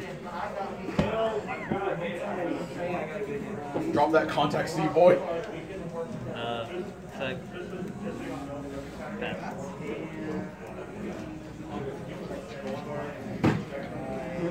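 Cards tap softly onto a tabletop mat.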